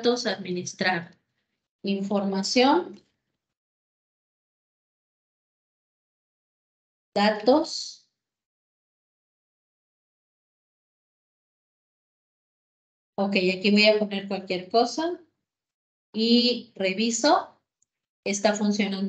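A woman speaks calmly over an online call, in short bursts.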